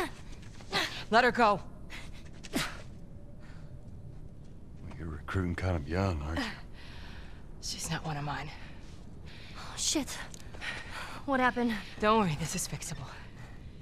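A woman speaks tensely, close by.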